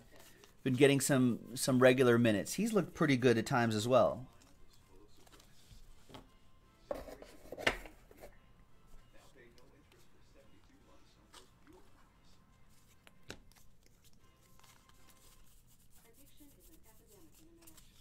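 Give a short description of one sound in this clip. Trading cards flick and rustle as a hand shuffles through them.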